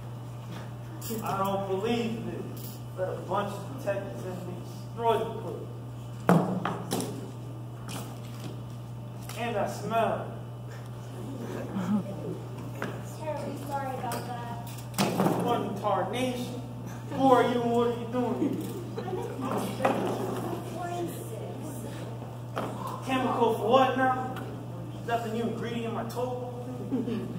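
A young man speaks with animation, heard from a distance in an echoing hall.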